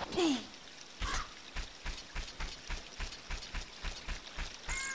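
A game character's steps thud in a quick, steady rhythm.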